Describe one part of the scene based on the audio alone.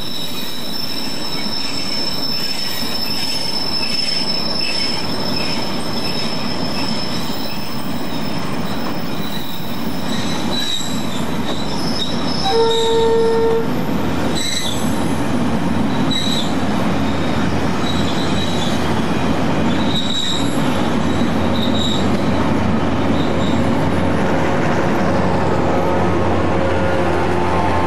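Train wheels squeal and clank over the rail joints.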